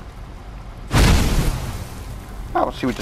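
A burst of fire whooshes and roars.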